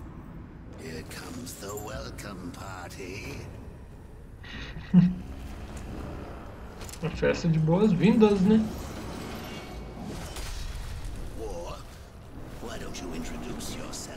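A deep male voice speaks slowly and menacingly.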